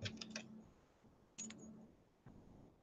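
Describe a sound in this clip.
A blade presses down through soft clay.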